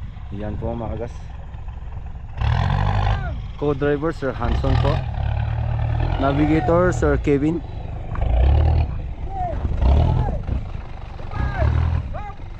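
An off-road vehicle's engine rumbles and revs as it climbs a dirt slope.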